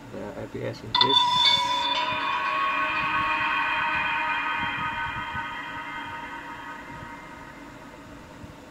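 A video game chime rings out from a small speaker and slowly fades.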